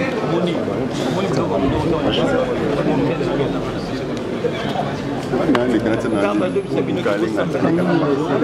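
A young man speaks with animation into a microphone close by.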